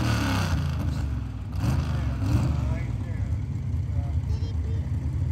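A large truck engine idles with a low rumble.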